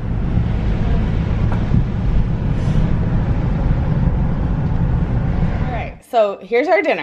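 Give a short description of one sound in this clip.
A car engine rumbles steadily from inside a moving car.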